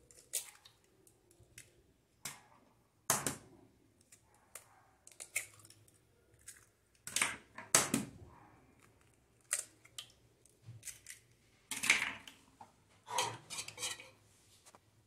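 Eggshells crack against the rim of a bowl.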